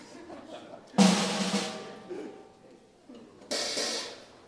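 A drum kit crashes with loud cymbal hits.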